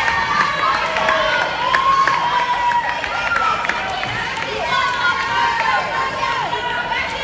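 Water splashes as swimmers kick and paddle in an echoing pool.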